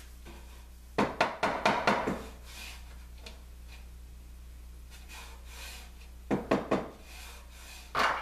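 A rubber mallet taps on wood.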